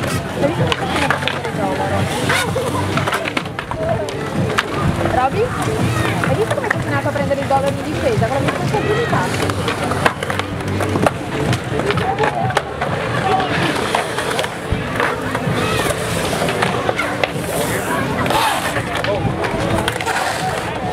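Skateboards clack against concrete.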